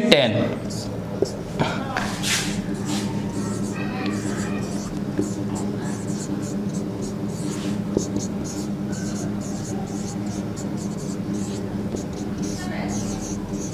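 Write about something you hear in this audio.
A marker squeaks and taps as it writes on a whiteboard.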